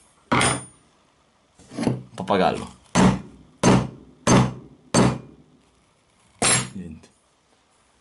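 Metal pliers bang hard against a phone on a table.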